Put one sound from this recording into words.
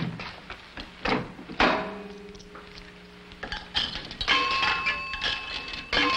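A rotary telephone dial clicks and whirs.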